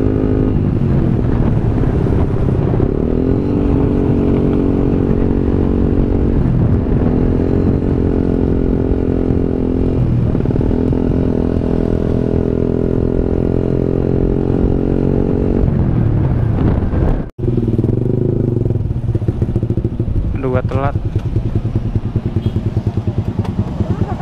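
A motorcycle engine hums steadily up close, rising and falling as it speeds up and slows down.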